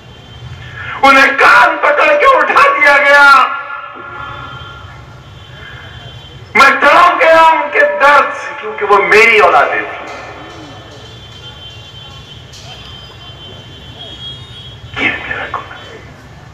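A man speaks loudly and forcefully through a loudspeaker, echoing in a large hall.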